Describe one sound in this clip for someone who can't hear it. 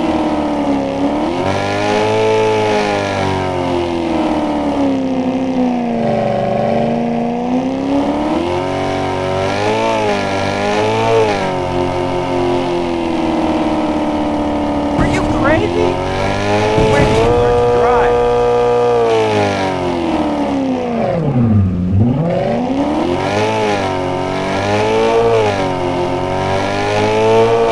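A car engine hums and revs up and down.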